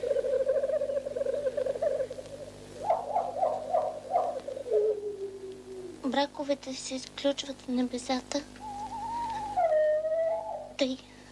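A woman sings slowly with vibrato, close by.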